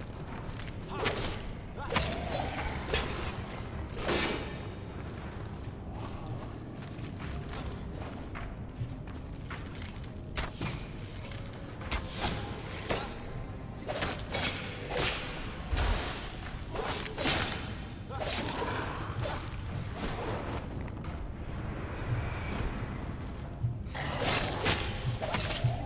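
Sword hits and clashes ring out in quick bursts.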